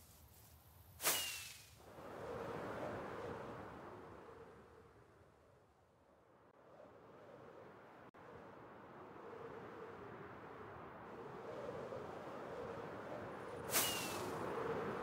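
A firework rocket launches with a sharp whoosh.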